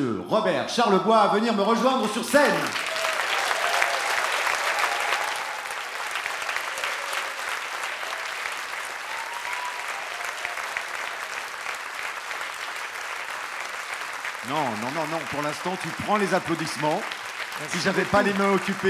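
A man speaks animatedly through a microphone in a large hall.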